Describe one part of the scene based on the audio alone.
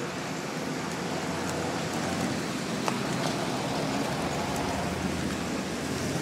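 Men talk nearby outdoors.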